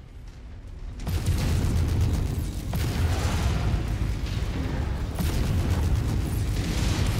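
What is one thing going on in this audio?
Explosions rumble and thunder with a deep roar.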